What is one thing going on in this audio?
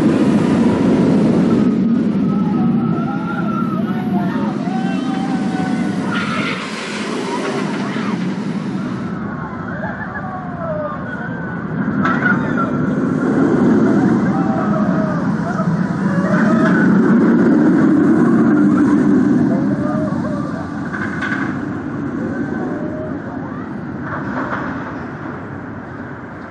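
Roller coaster trains roar and rumble along steel tracks.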